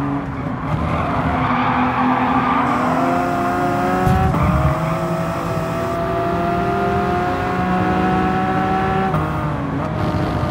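A racing car engine roars and climbs in pitch through the gears.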